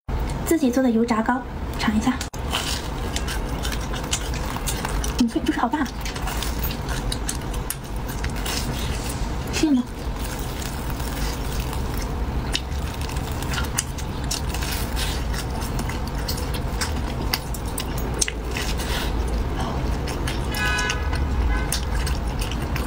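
A young woman chews crispy fried food noisily, close to a microphone.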